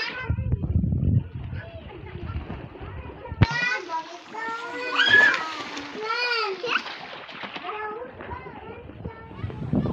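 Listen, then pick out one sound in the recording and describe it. Young children shout and squeal with excitement nearby.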